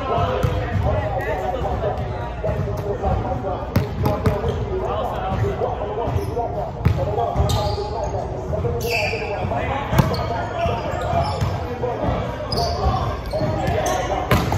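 Young men call out to each other during a volleyball game.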